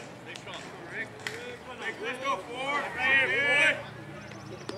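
Young players call out and cheer from across an open field.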